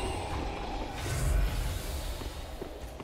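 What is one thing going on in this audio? Fire bursts and crackles.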